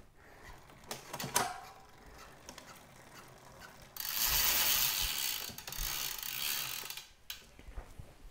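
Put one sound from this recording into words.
A bicycle crank and chain click and rattle as they are handled.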